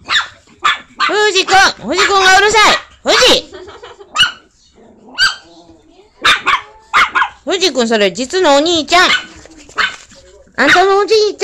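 Small dogs whine and howl in a high, wavering way.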